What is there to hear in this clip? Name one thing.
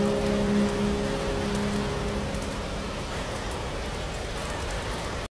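A wood fire crackles softly.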